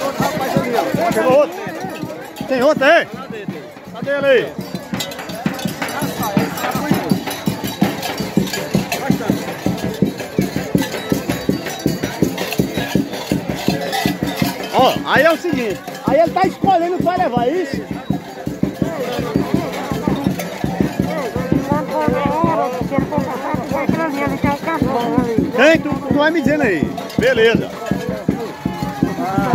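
A lively crowd chatters and shouts nearby, outdoors.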